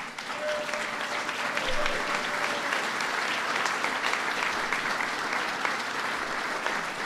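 A large crowd applauds steadily in an echoing hall.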